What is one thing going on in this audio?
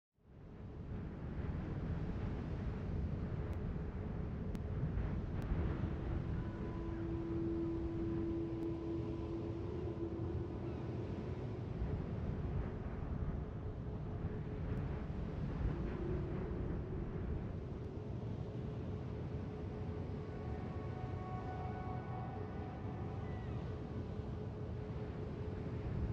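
A large ship's engines rumble steadily.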